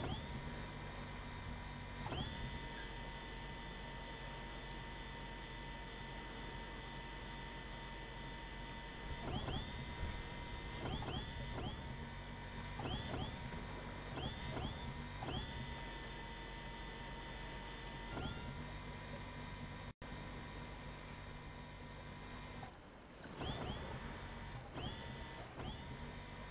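A toy plane's engines hum steadily with a high whine.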